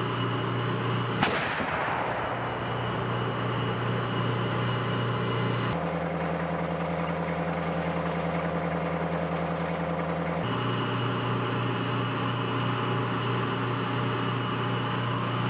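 A heavy vehicle engine idles with a steady low rumble.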